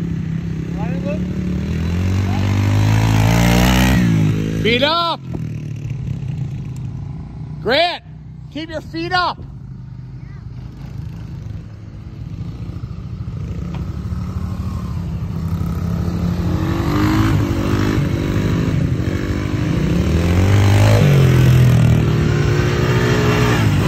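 A quad bike engine hums as it drives past.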